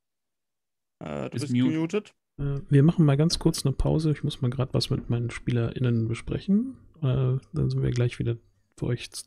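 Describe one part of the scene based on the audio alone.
A man speaks steadily over an online call.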